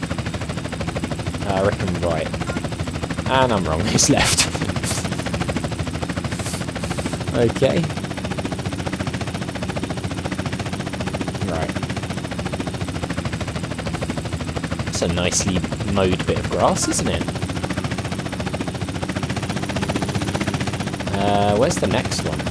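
A helicopter's rotor chops loudly and steadily.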